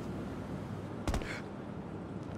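A person lands with a thud after jumping down.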